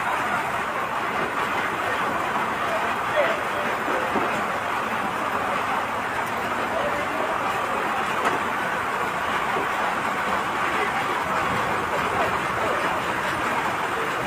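Several men talk in the background outdoors.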